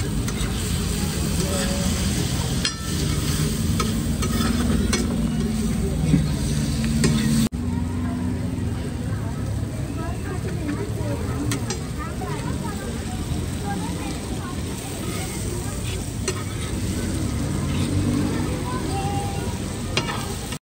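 A metal spatula scrapes and taps on a hot iron griddle.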